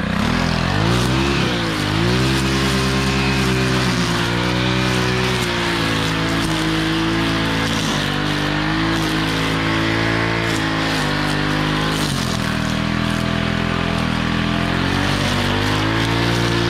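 A string trimmer line whips and cuts through grass.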